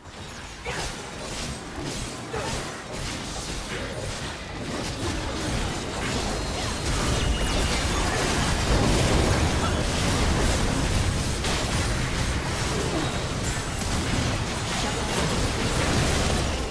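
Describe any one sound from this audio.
Magic blasts and clashing effects burst and crackle in a busy fight.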